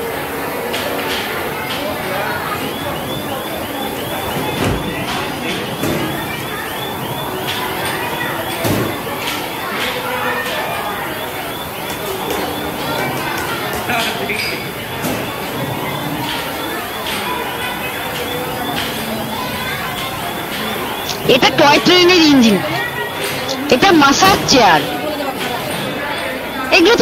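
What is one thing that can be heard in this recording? Many people chatter in the background of a busy indoor hall.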